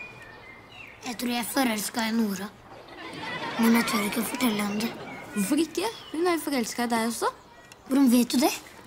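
A young boy talks calmly close by.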